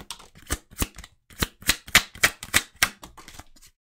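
A deck of cards is shuffled by hand.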